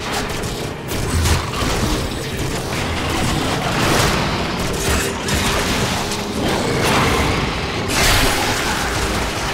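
Gunfire and energy blasts crackle loudly throughout.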